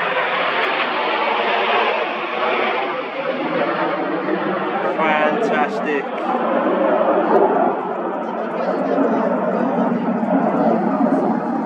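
Jet planes roar loudly overhead.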